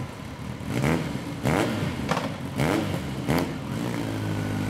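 A motorcycle engine revs up in quick rising bursts close by.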